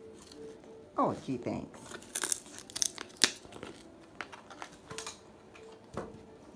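A cockatoo's beak cracks and crunches on wood.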